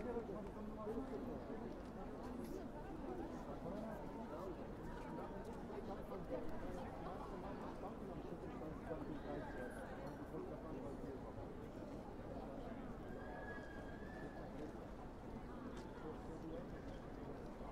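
A crowd murmurs and chatters all around outdoors.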